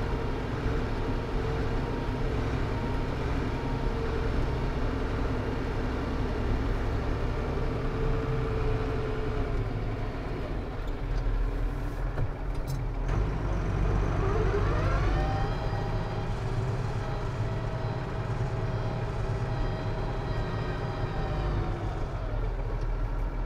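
A tractor engine rumbles steadily from inside the cab.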